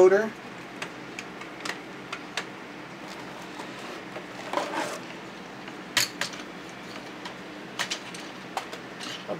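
Plastic toy parts click and clatter as they are set down on a hard surface.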